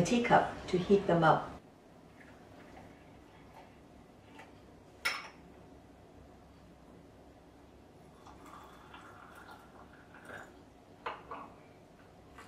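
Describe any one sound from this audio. Hot water pours from a kettle into a cup.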